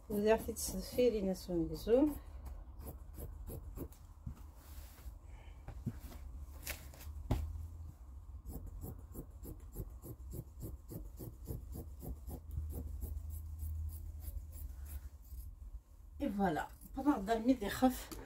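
Scissors snip through cloth in quick, steady cuts.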